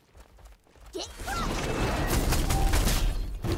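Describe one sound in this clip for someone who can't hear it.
A spell crackles and roars as a magic wall rises.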